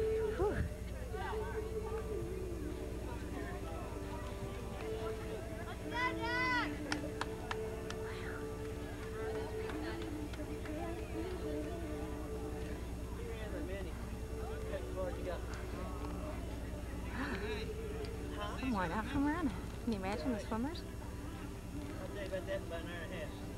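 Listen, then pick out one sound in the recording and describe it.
Several men talk casually outdoors.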